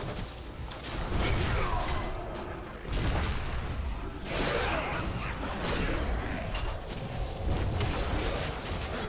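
Magic blasts burst and roar in loud rushes.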